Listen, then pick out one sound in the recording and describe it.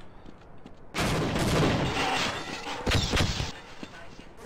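An explosion booms loudly, then rumbles away.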